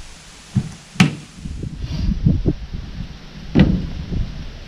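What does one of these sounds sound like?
Heavy logs thump and knock against a wooden truck bed.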